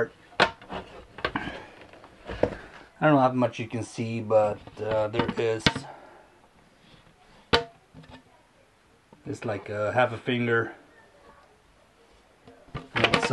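A plastic frame rattles and knocks as hands turn it.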